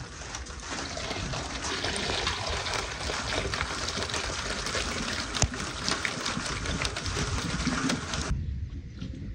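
Cherries tumble and patter into a metal pan.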